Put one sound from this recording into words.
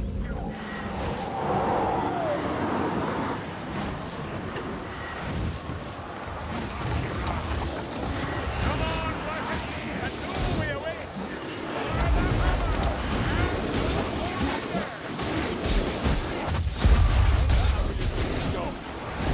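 A sword slashes and hacks into creatures.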